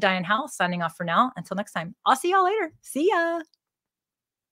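A woman speaks with animation into a microphone, close by.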